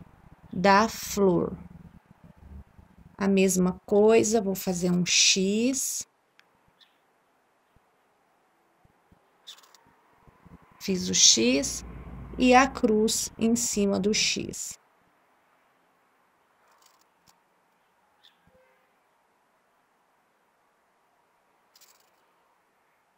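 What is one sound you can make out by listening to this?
Thread rasps softly as it is pulled through cloth.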